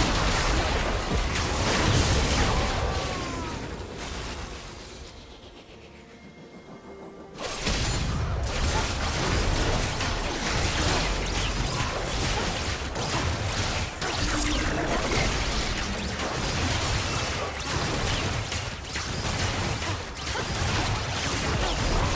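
Video game battle effects crash and crackle in quick bursts.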